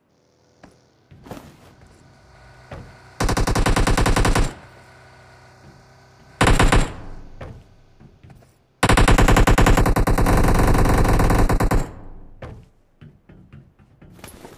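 Footsteps clang on metal container roofs.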